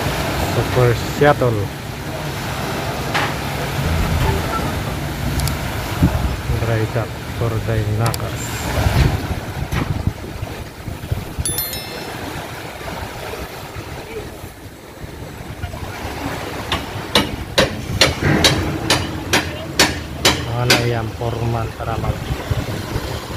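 Small waves lap gently at the water's edge.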